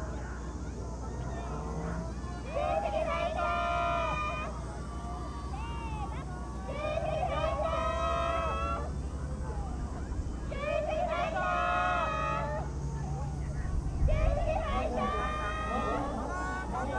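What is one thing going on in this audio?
Oars dip and splash in water at a distance.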